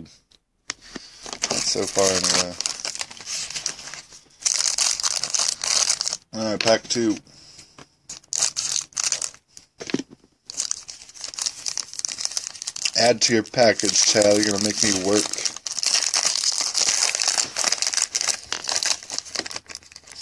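A foil card pack wrapper crinkles in the hands.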